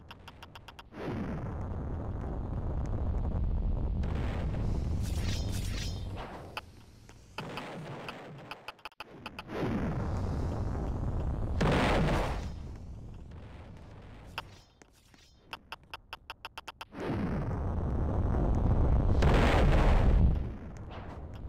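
Bombs explode with deep rumbling booms.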